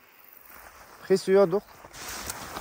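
A man speaks nearby outdoors.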